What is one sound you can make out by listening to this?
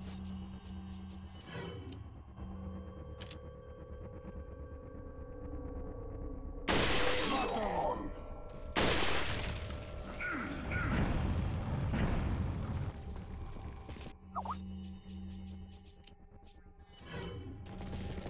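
Menu selections click with short beeps.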